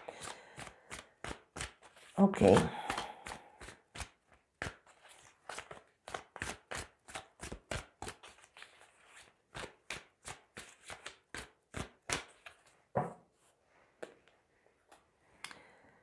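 Playing cards shuffle and riffle in quick soft flicks.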